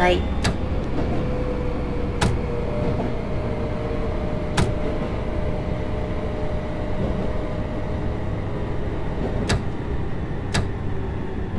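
Train brakes whine.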